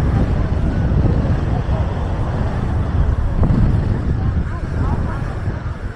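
Men and women chat faintly at a distance.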